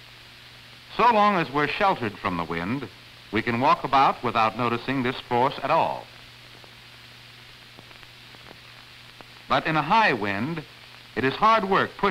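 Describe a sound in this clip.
A man speaks calmly and clearly.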